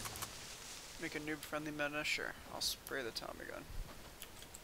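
A man talks through a microphone, close up.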